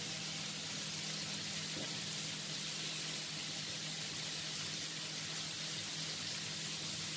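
Shrimp sizzle steadily in a hot frying pan.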